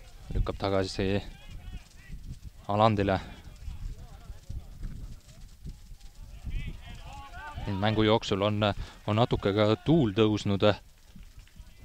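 Men shout loudly outdoors across a playing field.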